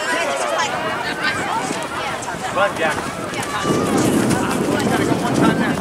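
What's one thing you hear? Adults on the sideline call out and cheer.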